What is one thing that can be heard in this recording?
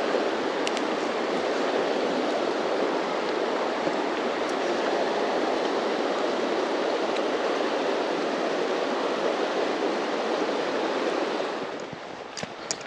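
A river rushes loudly close by.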